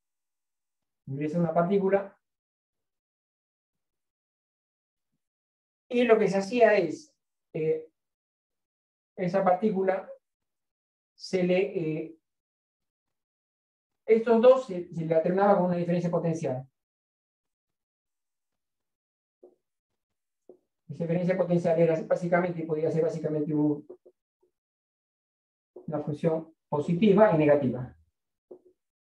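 A woman speaks calmly in short phrases, close by.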